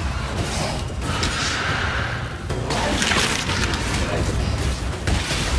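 Game spells crackle and burst during combat.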